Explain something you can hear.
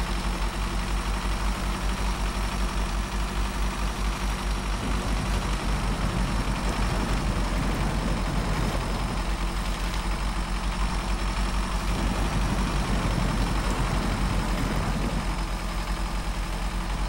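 A heavy truck engine rumbles steadily as it labours along.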